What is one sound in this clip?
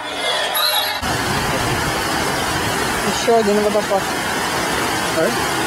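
Water rushes and splashes over a weir.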